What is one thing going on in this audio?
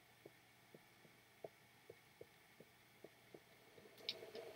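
Footsteps tread on stone at a steady pace.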